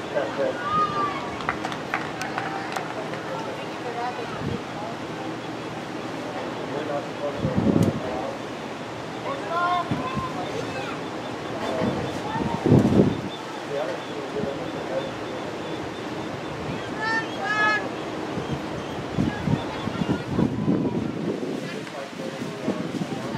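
Young women shout and call out across an open field outdoors.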